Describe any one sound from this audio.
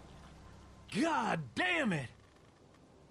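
A man speaks in a low, dismayed voice.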